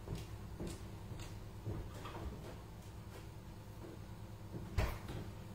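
Footsteps thud on a hard floor indoors.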